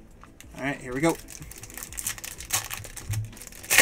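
A foil wrapper crinkles and rustles as it is handled.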